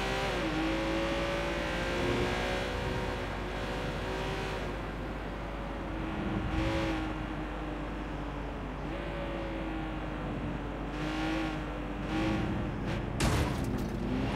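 A sports car engine roars steadily at high revs, shifting pitch as it changes gear.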